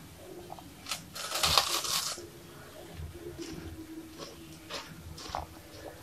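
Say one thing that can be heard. A young woman bites into a crunchy cake and chews.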